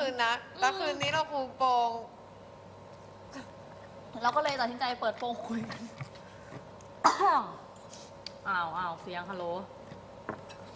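A young woman talks and laughs casually nearby.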